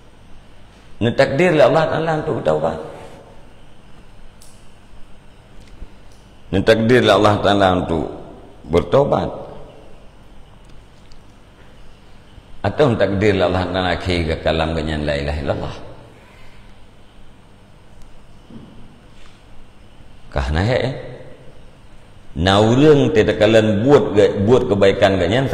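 A middle-aged man speaks calmly into a close microphone, in bursts with pauses.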